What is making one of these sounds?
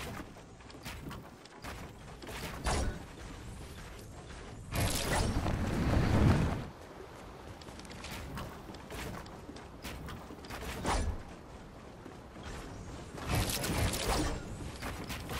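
Building pieces snap into place with quick clacks.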